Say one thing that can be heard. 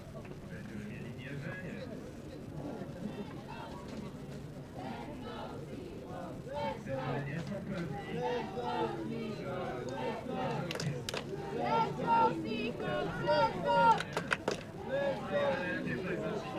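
Several men talk loudly nearby, outdoors.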